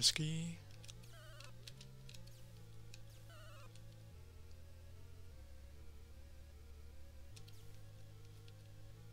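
Chiptune video game music plays steadily.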